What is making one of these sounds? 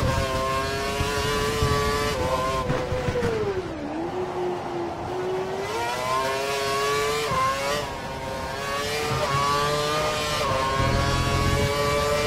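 A Formula One V8 engine screams at high revs.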